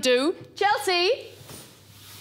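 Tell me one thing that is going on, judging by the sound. A woman speaks into a microphone over a loudspeaker.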